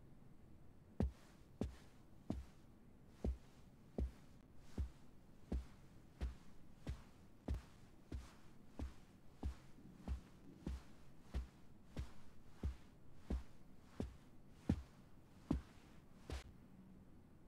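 Hard-soled shoes click in slow, even footsteps on a floor.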